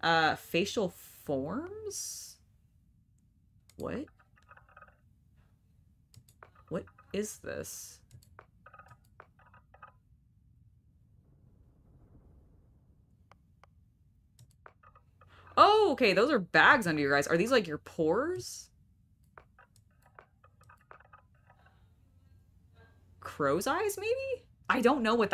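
A young woman talks with animation into a close microphone, pausing now and then.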